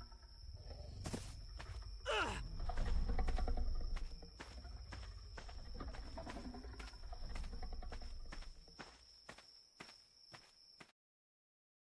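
Footsteps patter quickly over dirt.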